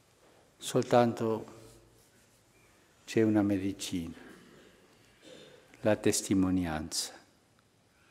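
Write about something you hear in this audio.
An elderly man speaks slowly and solemnly into a microphone, in short phrases with pauses.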